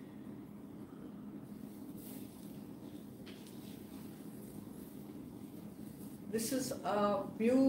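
Fabric rustles as it is unfolded and draped.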